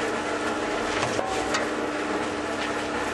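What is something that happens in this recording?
Sand pours into a turning cement mixer drum.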